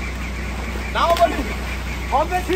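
Water splashes loudly as a young man dives into a pool.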